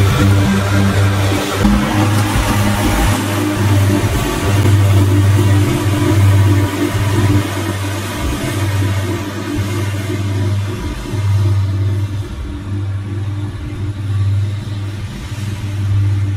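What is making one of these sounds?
A riding mower engine drones steadily, slowly fading as it moves away.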